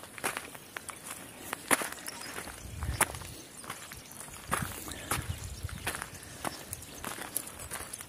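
Footsteps crunch on stony dry ground at a steady walking pace.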